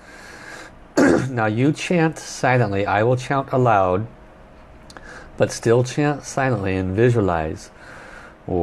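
A man speaks calmly and softly close to a microphone.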